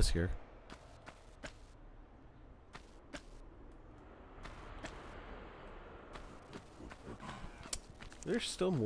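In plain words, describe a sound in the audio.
Footsteps patter quickly in an echoing hall.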